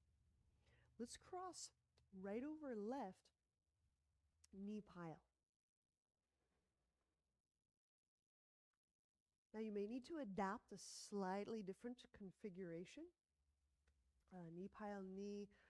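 A woman speaks calmly into a nearby microphone, in pauses.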